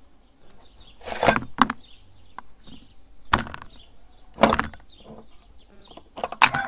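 Metal parts of a hand grinder clank and scrape against each other.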